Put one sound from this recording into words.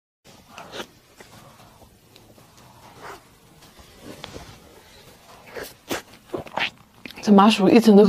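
A young woman chews and smacks her lips close to a microphone.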